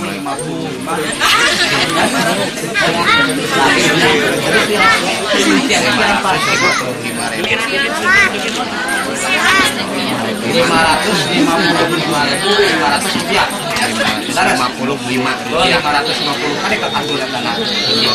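A crowd murmurs and chatters in the background.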